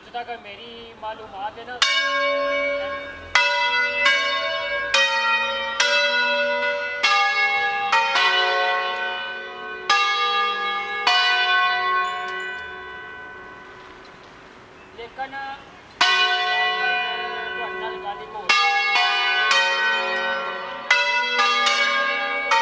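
Large church bells swing and ring out loudly, each stroke ringing on and fading, with a pause in the middle.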